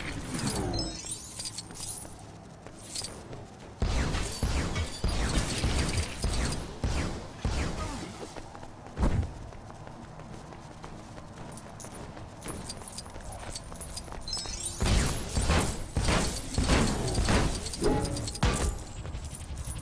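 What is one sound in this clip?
Coins jingle as they are collected.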